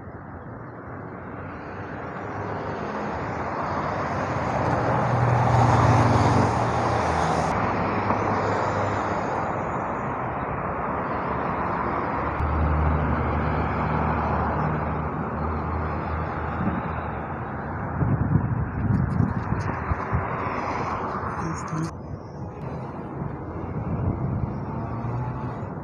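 Cars drive past on a wide road nearby.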